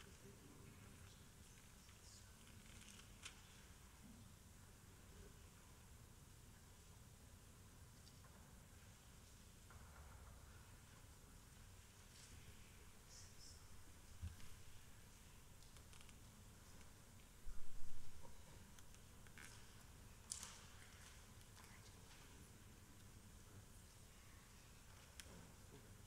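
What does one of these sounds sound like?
A small flame flickers and crackles softly.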